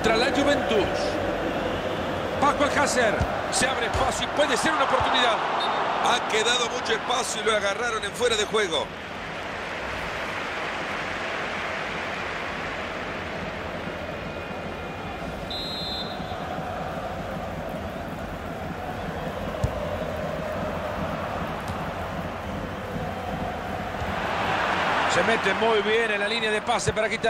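A large stadium crowd roars steadily and swells louder near the end.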